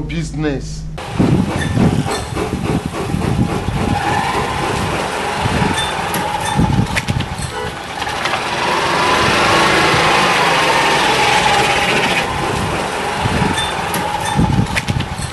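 A motor tricycle engine runs and rattles as it drives along.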